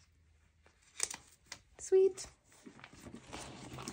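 Plastic binder sleeves rustle and crinkle as a page is turned.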